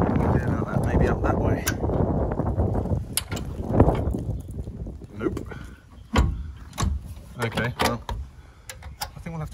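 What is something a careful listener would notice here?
A metal pin and wire clip click against a steel hinge bracket.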